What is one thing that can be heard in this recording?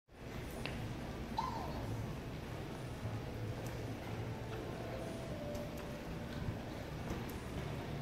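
A large indoor hall hums with a steady echoing background murmur.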